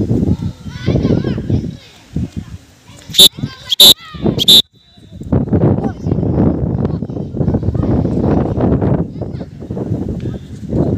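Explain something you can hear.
Boys shout and call out outdoors.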